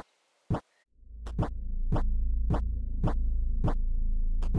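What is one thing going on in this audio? Low droning game music plays.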